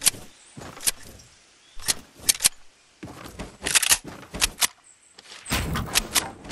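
Wooden walls and floors snap into place with sharp clacks, again and again.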